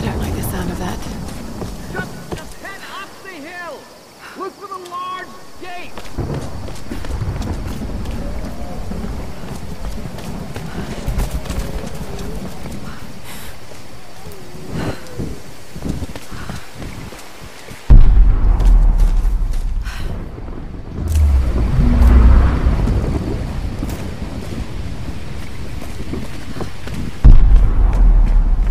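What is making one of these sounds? Footsteps run over leaves and stone.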